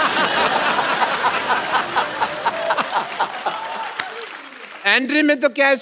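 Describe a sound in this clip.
Men laugh heartily.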